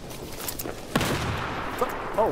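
Gunshots crack in a rapid burst close by.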